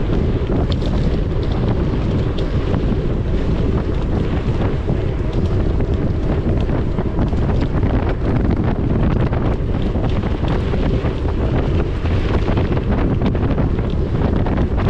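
Mountain bike tyres crunch and rattle over a dirt trail.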